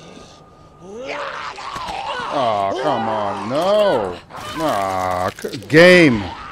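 A zombie growls and moans loudly.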